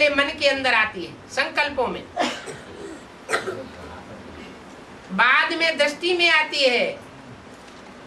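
An elderly man speaks calmly and with pauses, close to a microphone.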